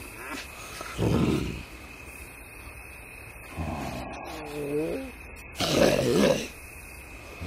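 A bear growls and grunts in short bursts.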